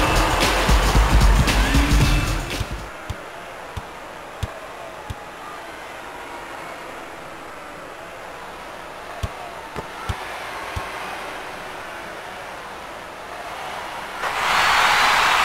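A crowd cheers loudly in a large arena.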